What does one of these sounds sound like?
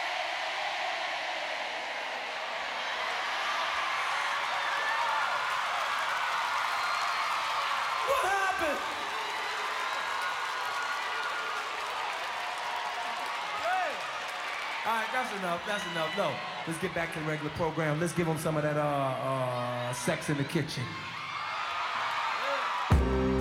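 A large crowd cheers and screams loudly in a big hall.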